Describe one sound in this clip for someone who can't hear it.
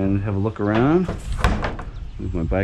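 A heavy plastic dumpster lid thumps shut.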